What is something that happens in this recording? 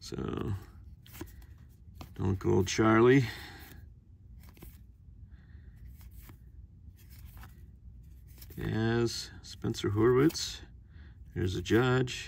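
Stiff cards slide and flick against each other in a stack.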